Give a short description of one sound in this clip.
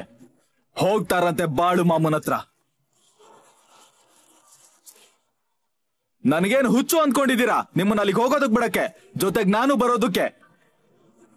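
An elderly man speaks firmly and close by.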